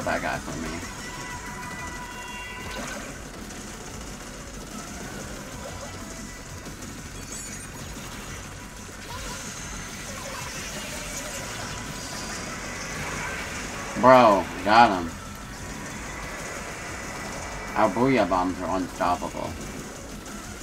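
A young man speaks with excitement close to a microphone.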